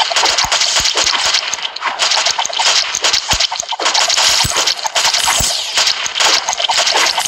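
Game hit sounds ping and chime repeatedly.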